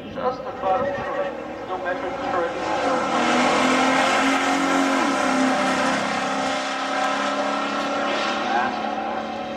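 A car engine roars as the car accelerates hard away.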